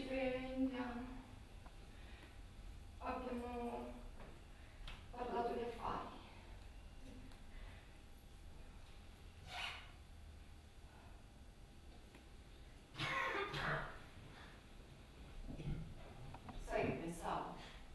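A young woman speaks in short, drawn-out phrases nearby.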